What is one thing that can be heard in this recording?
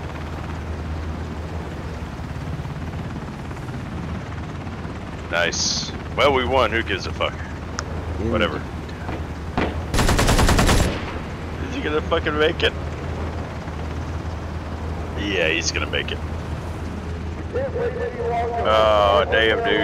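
A helicopter's rotor thuds steadily close by.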